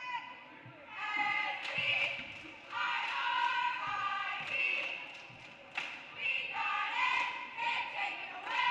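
Young players shout and cheer in an echoing gym.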